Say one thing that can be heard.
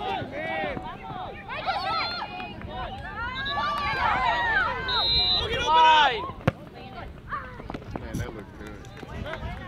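Children shout and call out excitedly across an open field.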